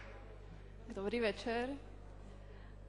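A young woman speaks briefly through a microphone.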